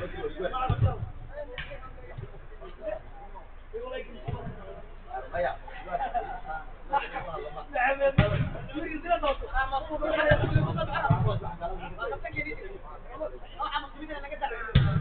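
Several men shout and call out to each other at a distance.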